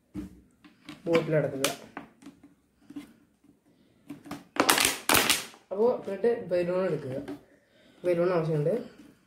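A plastic bottle crinkles and crackles as it is handled.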